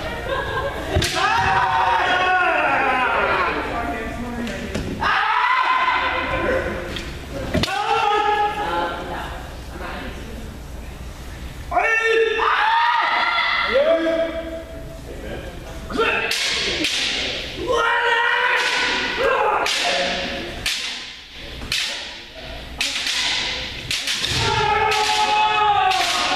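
Bamboo swords clack and strike sharply.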